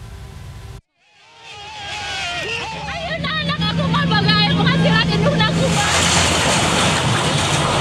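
A crowd shouts and jostles in a scuffle.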